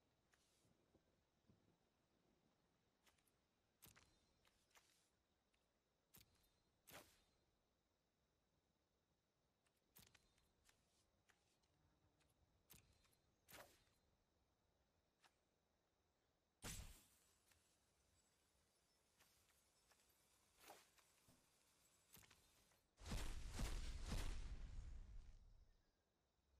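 Short clicks and soft chimes sound from a computer card game.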